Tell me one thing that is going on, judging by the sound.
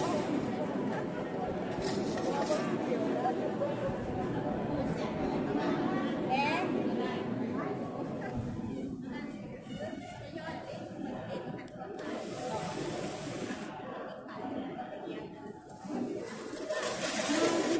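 A crowd of men and women chatter nearby in a large echoing room.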